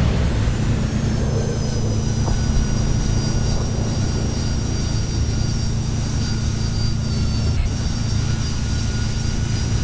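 A jet engine whines with a high, steady hum.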